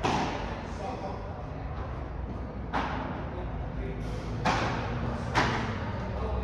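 Padel rackets strike a ball with sharp pops in a large echoing hall.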